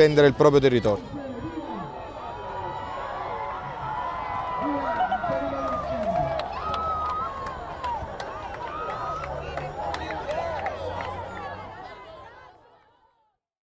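A crowd of children cheers and shouts outdoors.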